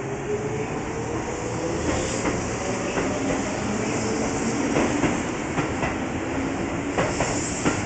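Train wheels rattle and clack over the rails.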